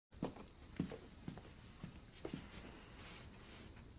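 A cardboard box thumps as it is set down.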